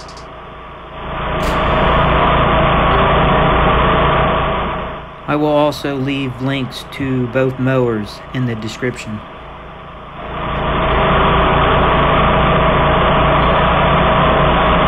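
A mower engine roars steadily close by.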